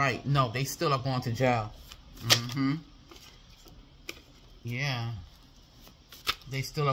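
Paper cards rustle as they are handled.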